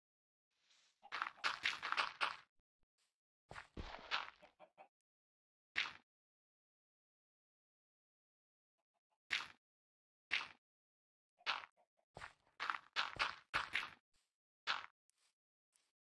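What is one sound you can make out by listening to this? Blocks are placed one after another with short, dull thuds.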